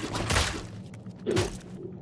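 A pickaxe swings through the air.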